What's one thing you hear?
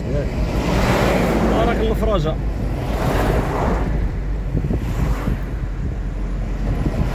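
Tyres roll steadily over asphalt.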